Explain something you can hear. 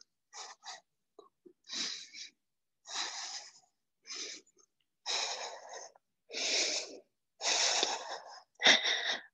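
A woman exhales sharply with effort.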